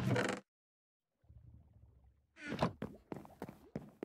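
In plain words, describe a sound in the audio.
A wooden chest thumps shut.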